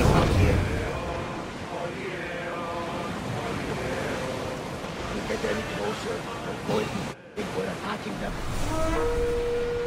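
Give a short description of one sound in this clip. Water splashes and rushes against a sailing ship's hull.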